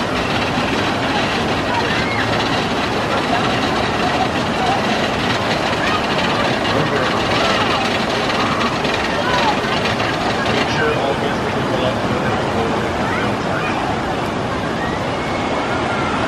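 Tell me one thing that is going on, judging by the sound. Rushing water roars steadily down a channel.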